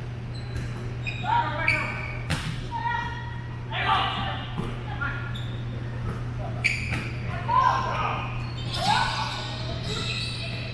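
Young men and women call out to each other from across the hall.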